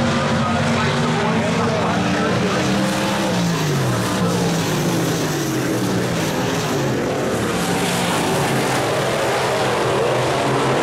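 Race car engines roar and rev loudly as cars speed past.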